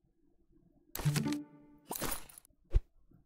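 A bright game chime rings out with a short fanfare.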